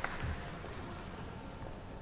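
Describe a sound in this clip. High heels click on a wooden floor in a large echoing hall.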